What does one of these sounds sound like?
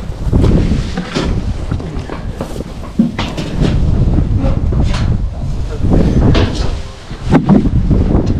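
Boards scrape and knock as they are pried loose.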